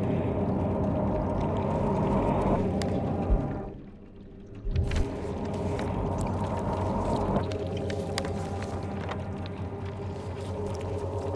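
Paper rustles and crinkles as a sheet is handled.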